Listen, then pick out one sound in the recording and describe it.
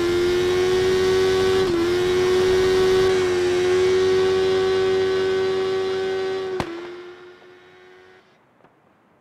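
A motorcycle engine whines at high revs, holding steady and then fading away.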